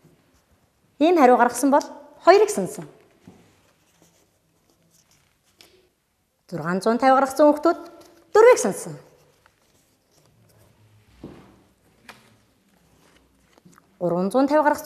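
A woman speaks clearly and with animation, close to a microphone, in short bursts.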